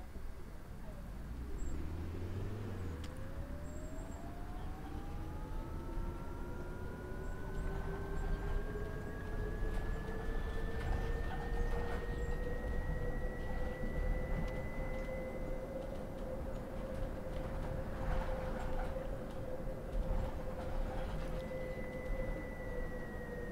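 A bus rumbles over the road.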